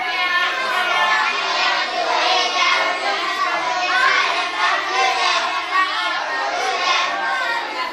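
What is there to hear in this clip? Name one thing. A group of young boys recite aloud together in unison, close by.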